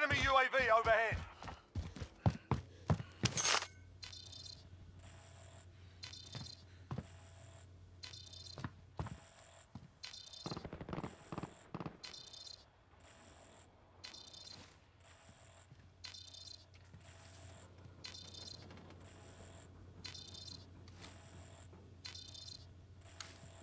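Footsteps thud steadily across a floor.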